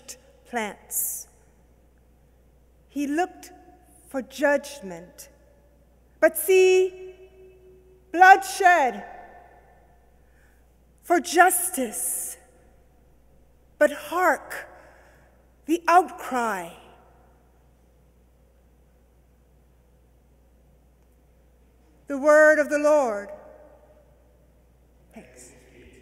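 A woman sings slowly into a microphone in an echoing room, with long pauses between phrases.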